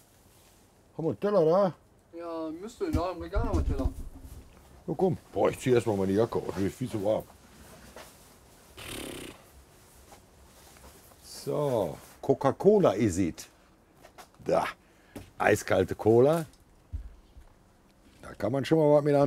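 Men talk nearby with animation.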